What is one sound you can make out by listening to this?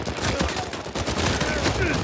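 A pistol fires shots.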